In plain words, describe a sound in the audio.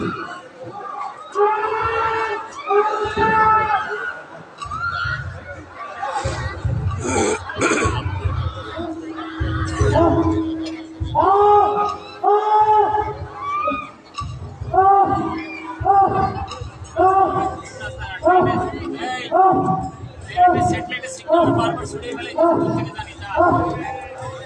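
A woman sings loudly over loudspeakers outdoors.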